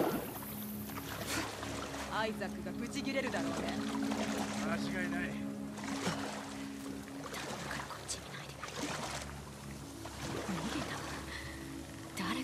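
Water ripples and laps as a swimmer moves slowly along.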